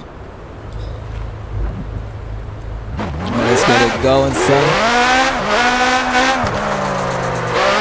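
A car engine idles low, then revs up loudly and shifts through gears.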